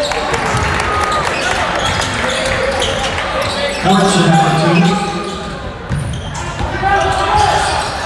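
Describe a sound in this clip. A basketball bounces on a hard floor with dull thuds.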